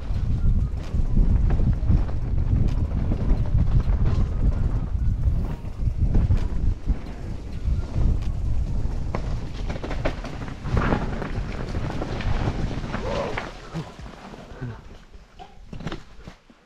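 A mountain bike rattles and crunches over dry leaves and rocks on a trail.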